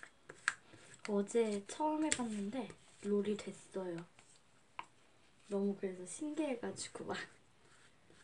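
A young child speaks calmly close by.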